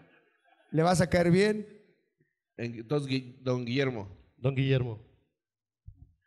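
A young man talks with animation into a microphone, heard through a loudspeaker.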